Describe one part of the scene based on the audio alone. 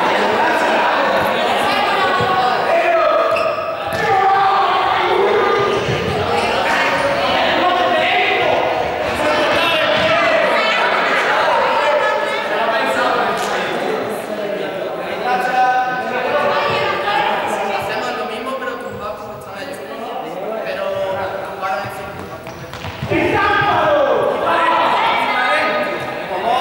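Young people talk and call out to each other, echoing in a large hall.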